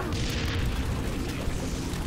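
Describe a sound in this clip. A blast booms nearby.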